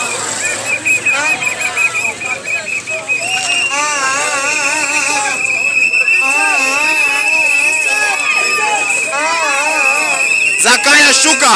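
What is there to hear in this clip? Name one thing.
A crowd of men and women chants and sings loudly outdoors.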